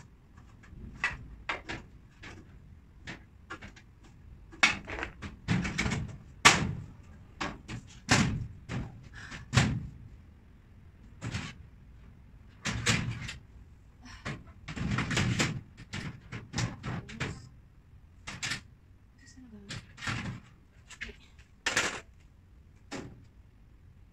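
Wooden cabinet panels knock and clatter.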